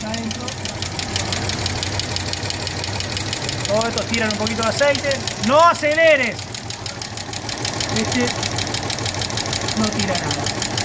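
An engine idles with a rapid, steady ticking of valves.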